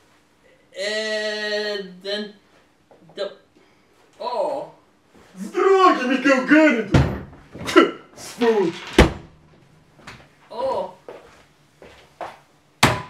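A man speaks in an exaggerated, theatrical voice close by.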